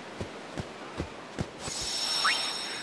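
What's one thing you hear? Footsteps thud on sand.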